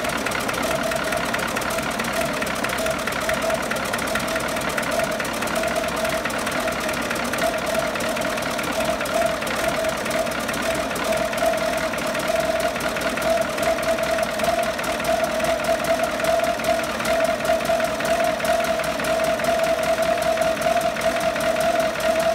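An engine runs loudly and steadily, with a rapid chugging beat.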